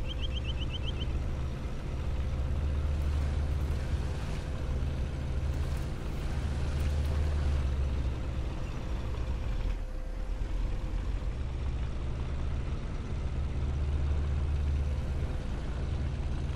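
A tank engine rumbles deeply and steadily as the tank drives over rough ground.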